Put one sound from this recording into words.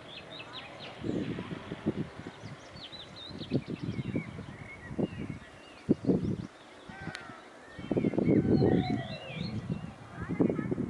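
Wind gusts outdoors, rumbling against the microphone.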